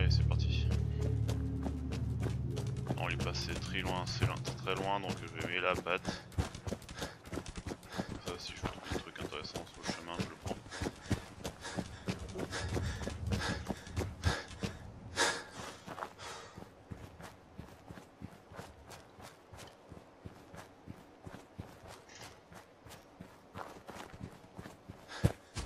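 Footsteps crunch steadily over rough ground.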